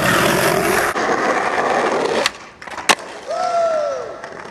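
Skateboard wheels roll over rough asphalt.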